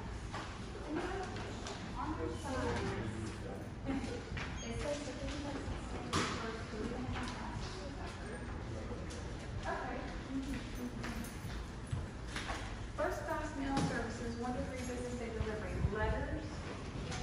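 Women talk nearby in a large echoing hall.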